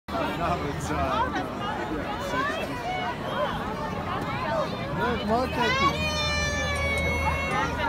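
A large crowd chatters outdoors on a busy street.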